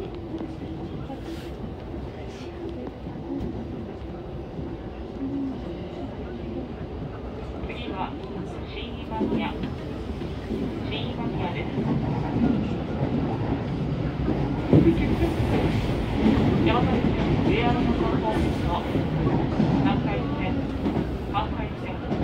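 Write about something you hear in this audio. A train rumbles steadily along the tracks, growing louder.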